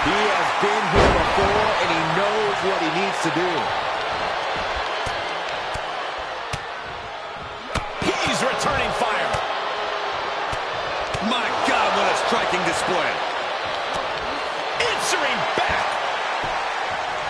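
Heavy bodies slam and thud onto a wrestling mat.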